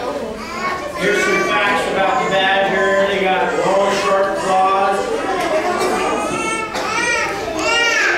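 A man speaks through a loudspeaker.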